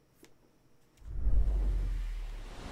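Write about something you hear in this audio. A deep electronic rumble swells suddenly and then fades.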